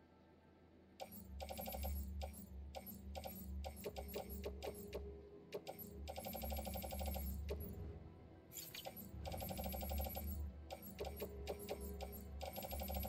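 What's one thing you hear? Short electronic menu clicks tick quickly, one after another.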